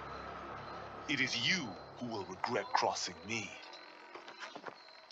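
A young man speaks in a low, steady voice.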